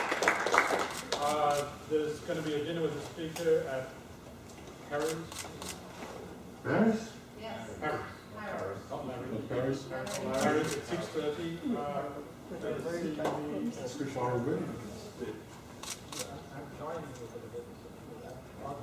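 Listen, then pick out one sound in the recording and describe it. A man talks calmly into a microphone in an echoing hall.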